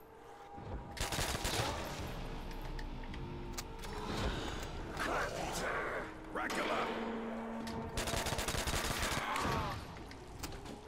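A zombie growls and moans close by.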